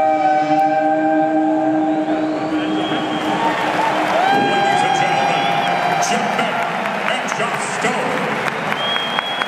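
A woman sings into a microphone, heard through loudspeakers in a large echoing hall.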